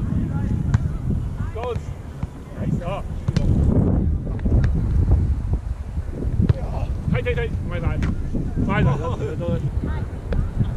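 Men call out to one another at a distance outdoors.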